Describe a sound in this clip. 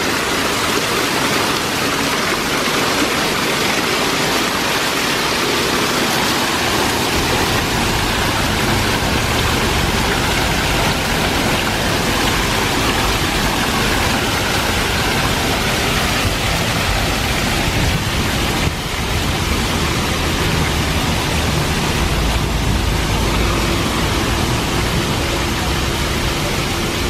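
Water pours steadily down a wall in a close, rushing splash.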